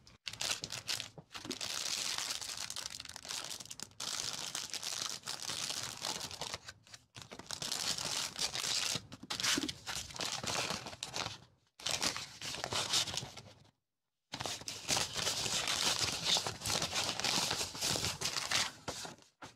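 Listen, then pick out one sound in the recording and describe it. Fingers crinkle a cellophane bag of paper scraps close up.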